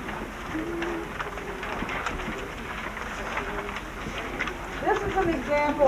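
A group of people murmurs and chatters quietly.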